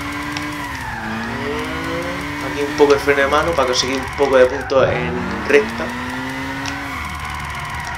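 A racing car engine whines at high speed, its pitch dipping and rising as it shifts.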